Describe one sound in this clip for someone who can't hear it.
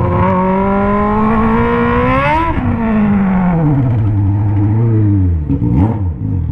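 A motorcycle engine revs up and then drops to a low, rumbling idle as the bike slows.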